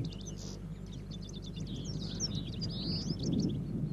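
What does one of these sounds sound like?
A bird chirps and trills.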